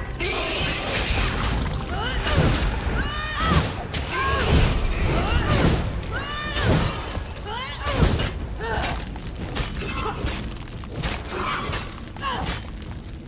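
Spell blasts crackle and boom in quick bursts.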